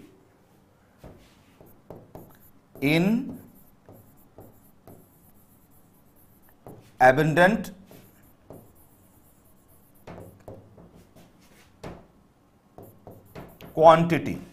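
A marker squeaks and taps on a whiteboard.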